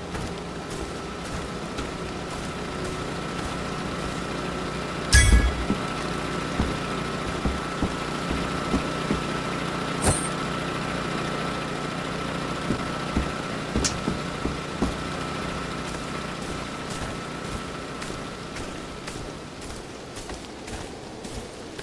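Footsteps crunch on grass and dirt at a walking pace.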